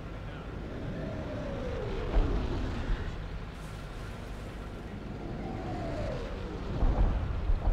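Artillery shells whistle as they fall.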